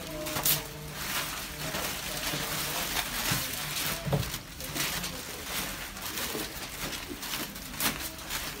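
Plastic packets rustle and crinkle as they are pulled from a woven plastic sack.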